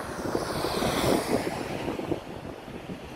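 A van drives past close by.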